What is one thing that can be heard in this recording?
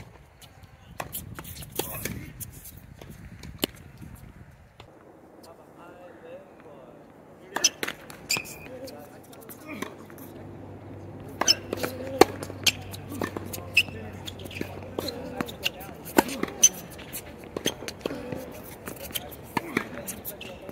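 A tennis ball is struck back and forth with sharp pops of the rackets.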